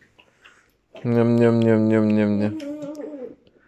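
A toy whistle blows a steady, buzzing tone.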